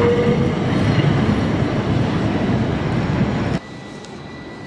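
A tram rumbles along its rails nearby.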